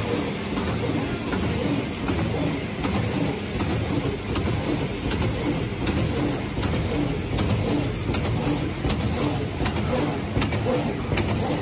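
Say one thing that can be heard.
A machine hums and rumbles steadily.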